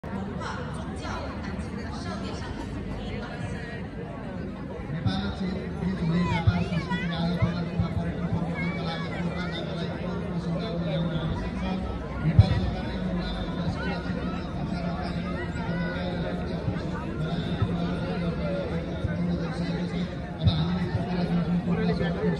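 A crowd of people chatters outdoors.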